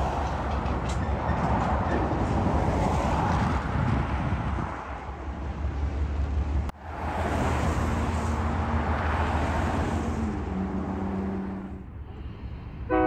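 Cars and trucks drive past on a road.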